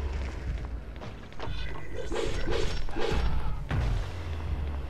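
Sword blows strike with sharp, heavy hits.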